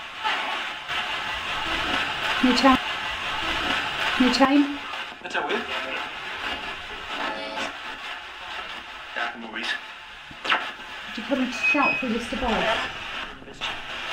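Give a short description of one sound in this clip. A radio hisses and crackles with rapid static sweeps close by.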